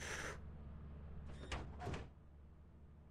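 A young woman speaks briefly and quietly into a microphone.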